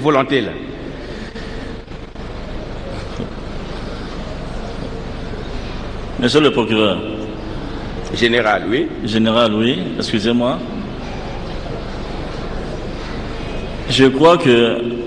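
A man speaks into a microphone in short bursts.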